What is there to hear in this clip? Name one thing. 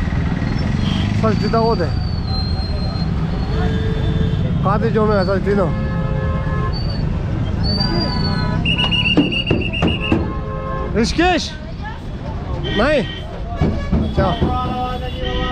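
Traffic rumbles steadily on a busy street outdoors.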